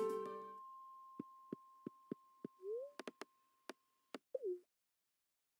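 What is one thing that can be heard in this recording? Short game blips and clicks sound.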